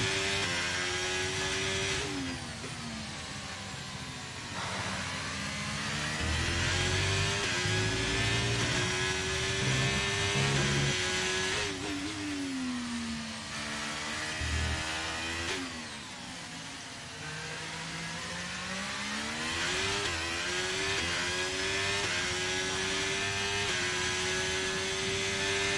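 A racing car engine screams, its pitch rising and falling through gear changes as the car brakes and accelerates.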